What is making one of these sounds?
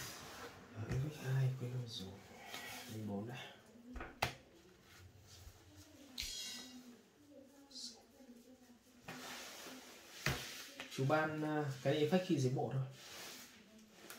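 Playing cards slide and tap softly on a rubber mat.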